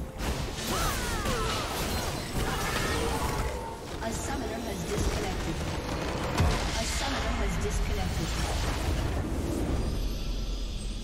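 Game spell effects crackle and whoosh during a battle.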